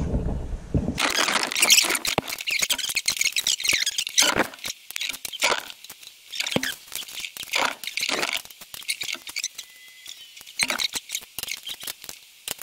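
A ratchet wrench clicks rapidly as bolts are tightened.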